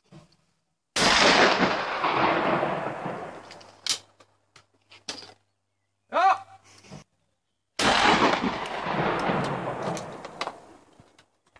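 A shotgun fires loudly and the blast echoes and rolls away outdoors.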